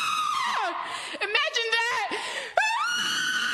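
A young person speaks briefly between the screams.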